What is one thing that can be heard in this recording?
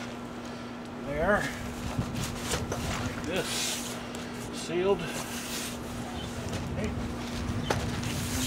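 A cardboard box rustles and scrapes as hands handle it.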